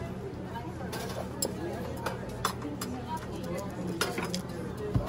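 A metal serving dish lid clanks open and shut.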